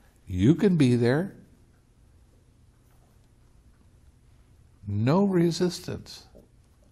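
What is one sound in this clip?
An elderly man speaks expressively and close by, with pauses.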